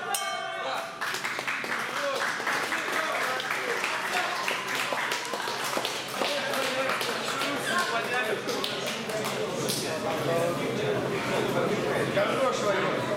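A crowd claps and cheers.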